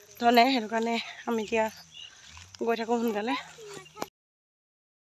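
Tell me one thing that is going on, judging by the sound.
A young woman speaks calmly, close up.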